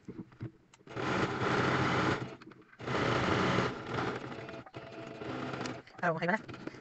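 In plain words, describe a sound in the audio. A sewing machine runs fast in short bursts.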